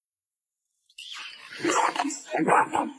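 A man slurps soup from a spoon.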